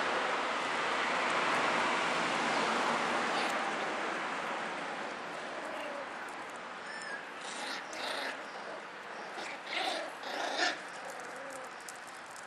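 Puppies scrabble and scuffle on wooden boards.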